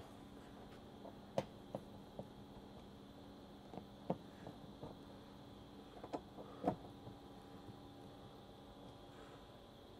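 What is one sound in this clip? A screwdriver clicks and taps against a plastic panel.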